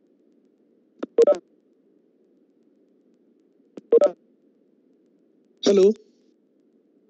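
A man speaks in a few short bursts over an online call.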